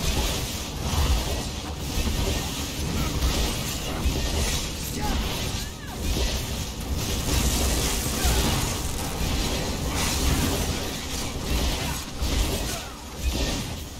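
Swords clash and magic blasts burst in a fast fight.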